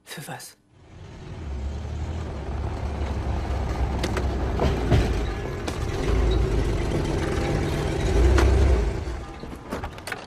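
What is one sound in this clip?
A car engine rumbles loudly as a car drives past.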